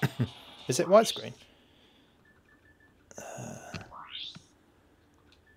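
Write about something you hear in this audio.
A handheld game console plays short electronic menu sounds.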